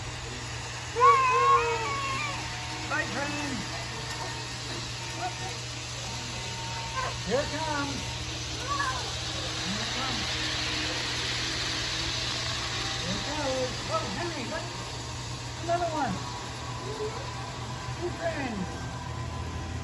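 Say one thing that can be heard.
A young child talks in a high voice.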